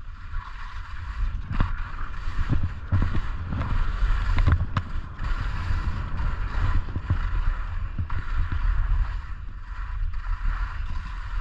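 Skis hiss and scrape over snow.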